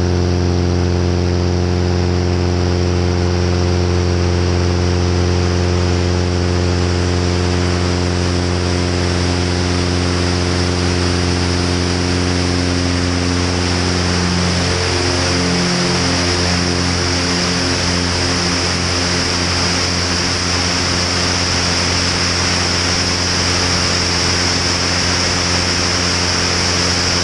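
A small plane's propeller engine drones loudly and steadily, close by.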